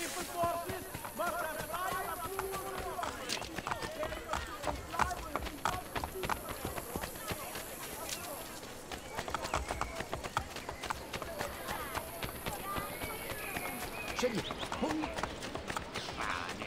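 Quick footsteps run over stone paving.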